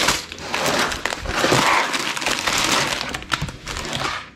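Plastic toy bricks clatter onto a table.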